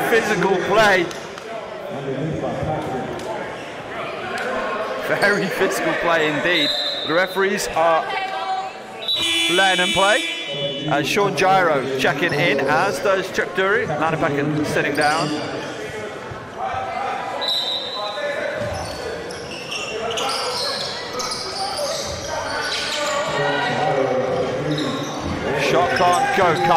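Spectators and players shout and talk across a large echoing hall.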